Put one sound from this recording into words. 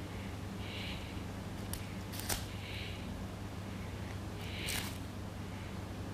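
Paper rustles softly between fingers.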